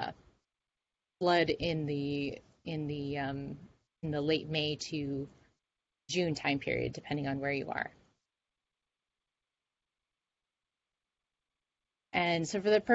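A young woman speaks calmly through a microphone in an online call.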